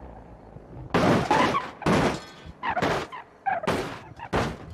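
A car thuds and bumps as it drives down steps.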